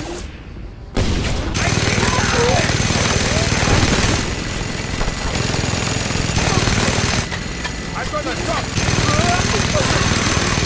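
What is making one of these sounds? A minigun fires in long, rattling bursts.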